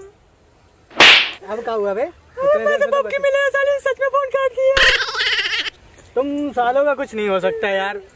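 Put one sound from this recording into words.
A second young man answers close by, laughing at times.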